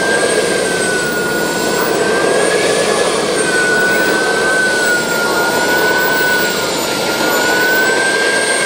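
A model jet turbine whines loudly and steadily up close.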